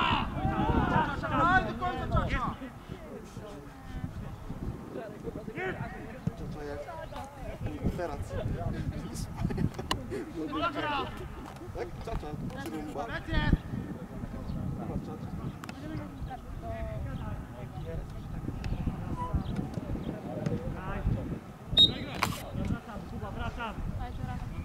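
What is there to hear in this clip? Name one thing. Young players shout to each other across an open outdoor field.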